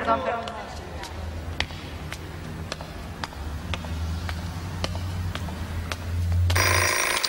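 Footsteps tap on stone stairs in an echoing hall.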